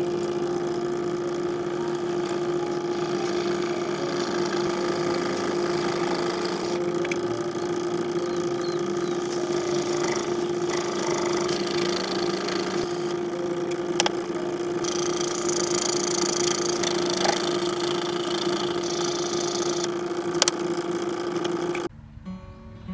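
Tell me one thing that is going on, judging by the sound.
A small electric scroll saw hums steadily.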